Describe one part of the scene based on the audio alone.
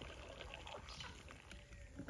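Water pours into a glass jar.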